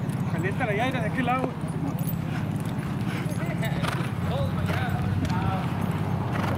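Horses walk with hooves thudding on a dirt track.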